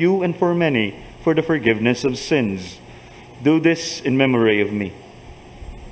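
A man speaks slowly and solemnly into a microphone in a large echoing hall.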